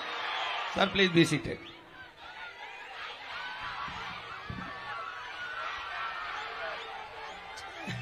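A crowd murmurs and chatters in the open air.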